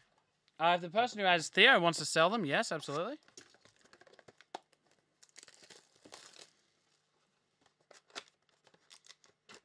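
A cardboard box rustles and taps as hands turn it over.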